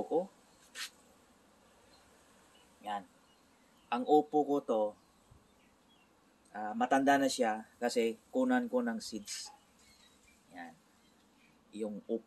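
A middle-aged man talks calmly close to the microphone, with pauses.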